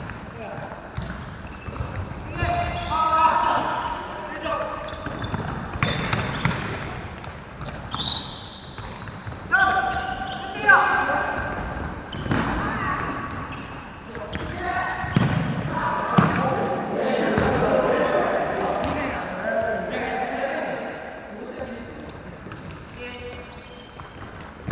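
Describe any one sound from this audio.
Shoes squeak on a wooden court floor.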